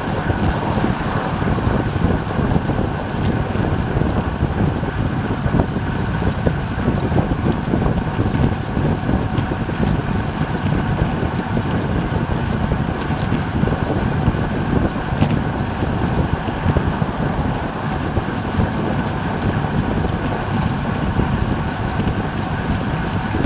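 Strong wind buffets a microphone outdoors.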